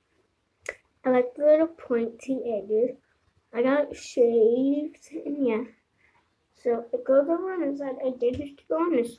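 A child speaks with animation close to a phone microphone.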